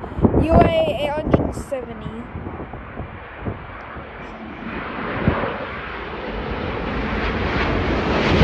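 A jet airliner roars overhead, growing louder as it approaches.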